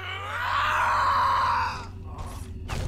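A young man shouts loudly close to a microphone.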